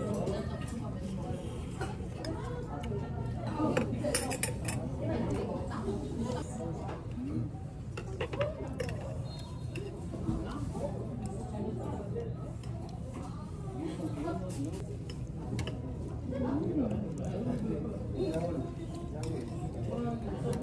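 Metal chopsticks clink against a metal bowl.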